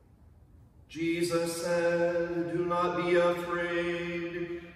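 A man chants in a steady singing voice in an echoing room.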